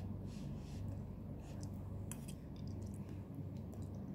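A woman slurps noodles.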